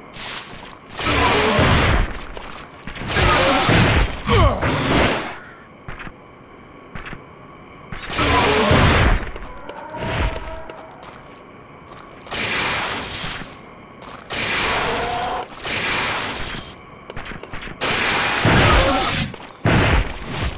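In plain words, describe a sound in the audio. Gunshots blast in a video game.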